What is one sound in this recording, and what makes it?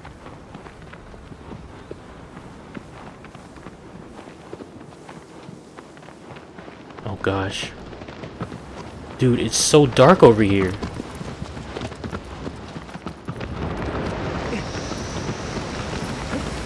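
A horse gallops with rapid hoofbeats on open ground.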